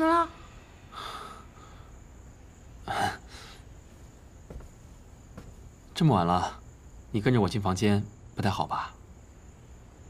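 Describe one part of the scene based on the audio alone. A young man speaks softly and teasingly, close by.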